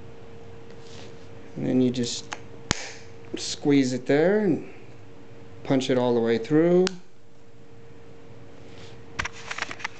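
A plastic card clicks and taps as fingers handle it.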